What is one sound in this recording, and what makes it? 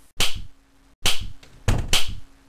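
A door slams shut.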